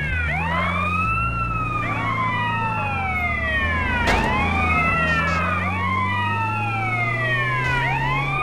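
An ambulance siren wails in rising and falling sweeps.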